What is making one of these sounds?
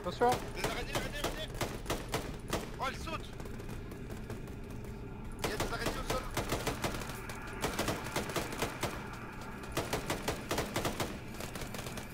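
Rapid gunfire rings out in quick bursts.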